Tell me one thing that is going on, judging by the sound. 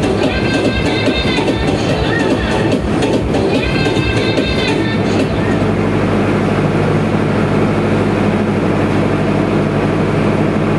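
Loud music with a singing voice plays through loudspeakers.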